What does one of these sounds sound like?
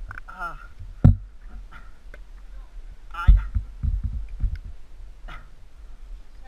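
A bicycle clunks and rattles as it is pulled off the ground.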